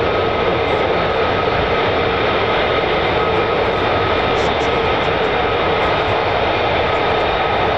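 A jet engine roars steadily nearby.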